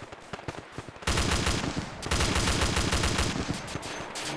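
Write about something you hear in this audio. A heavy machine gun fires two long, rapid bursts.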